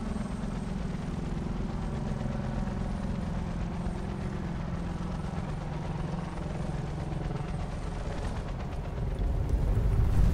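An aircraft engine drones steadily.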